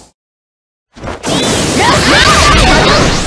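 A game energy attack hits with a loud whooshing burst.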